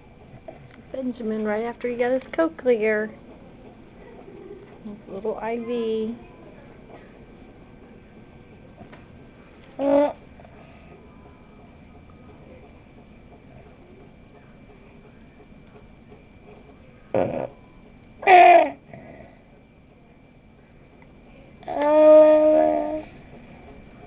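A young child speaks softly and sleepily, close by.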